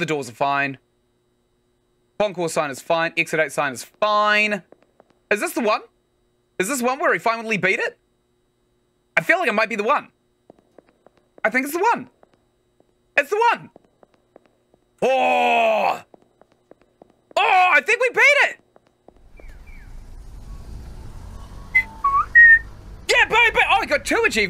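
A young man talks with animation close to a microphone, in bursts with pauses.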